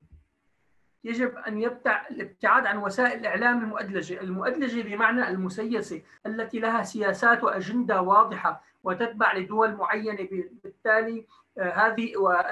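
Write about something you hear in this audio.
A man speaks with animation into a microphone on an online call.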